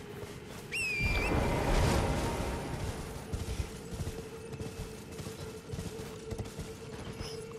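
A horse gallops over ground.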